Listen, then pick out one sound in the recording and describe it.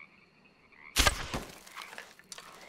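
A rifle fires a single loud shot, echoing briefly.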